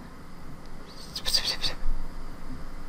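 A game card plays with a bright magical shimmer.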